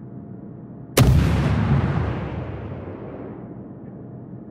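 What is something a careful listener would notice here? Heavy naval guns fire a loud, booming salvo that rumbles away slowly.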